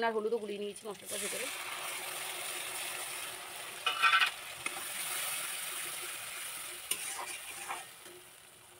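Food sizzles in hot oil.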